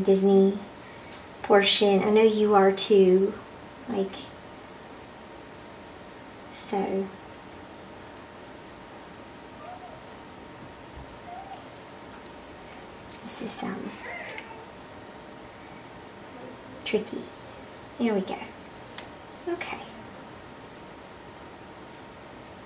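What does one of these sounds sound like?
Small plastic pieces click and rustle between fingers.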